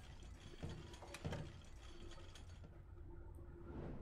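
A wooden box lid thuds shut.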